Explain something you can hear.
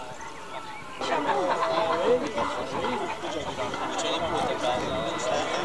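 Children and men chatter together nearby.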